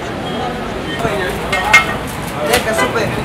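A knife scrapes and clinks against a meat spit.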